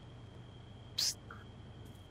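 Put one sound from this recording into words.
A single gunshot cracks sharply nearby.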